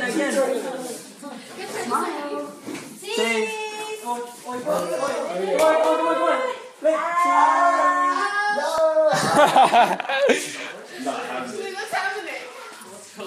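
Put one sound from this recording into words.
A group of adults sings together close by, with a cheerful tone.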